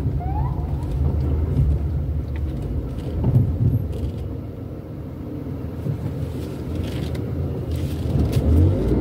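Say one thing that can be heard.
Tyres roll over a paved street.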